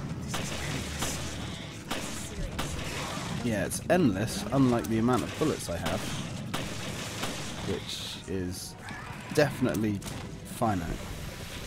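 A monster snarls and growls.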